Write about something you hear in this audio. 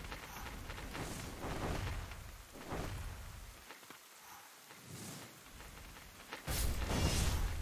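Sword slashes whoosh and ring out.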